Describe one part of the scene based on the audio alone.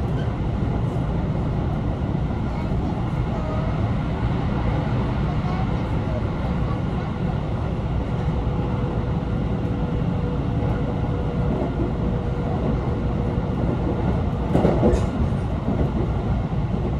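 Wheels of an electric commuter train rumble on the rails, heard from inside the carriage.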